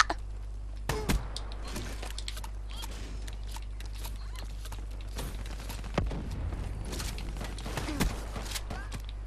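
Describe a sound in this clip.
Gunshots from a video game crack in short bursts.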